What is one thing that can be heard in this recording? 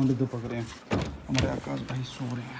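A door handle clicks as a door opens.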